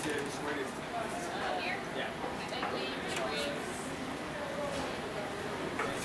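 Serving utensils clink against metal trays.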